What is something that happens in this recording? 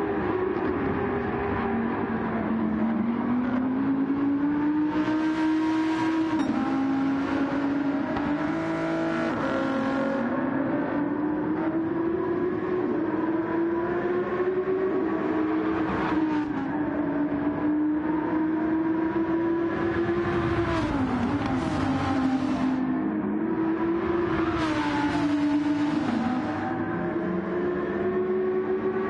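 A racing car engine roars and whines, rising and falling in pitch as it shifts gears.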